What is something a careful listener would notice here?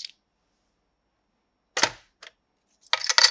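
A toy cash register key clicks.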